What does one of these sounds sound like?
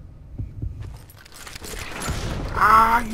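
A gunshot fires loudly.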